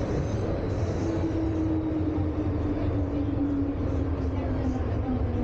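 A train's motor whines with a slowly falling pitch.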